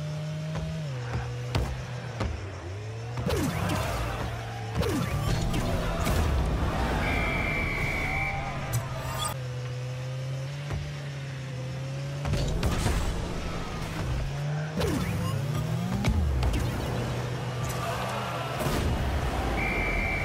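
A car engine hums steadily and changes pitch as it speeds up and slows.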